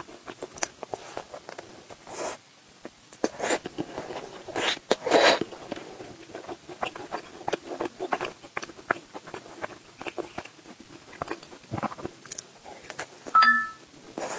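A young woman bites into crispy crust with a crunch.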